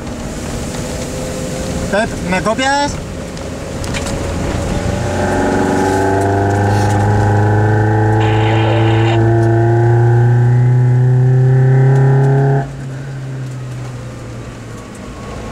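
A car engine hums steadily and revs higher, then drops.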